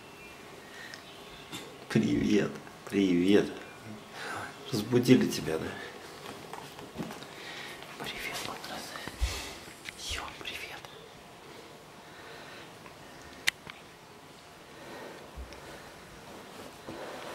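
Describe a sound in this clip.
Fabric rustles as a bear cub shifts on a pillow.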